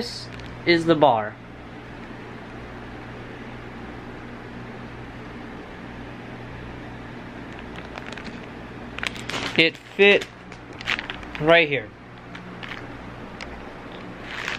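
Plastic packaging crinkles in a hand.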